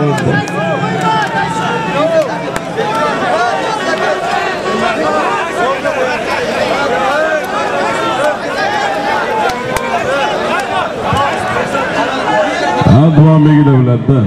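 A crowd of men shout and yell loudly outdoors.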